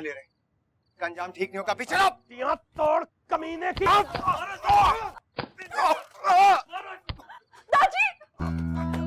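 A young man shouts angrily.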